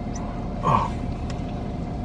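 A man bites into and chews food close by.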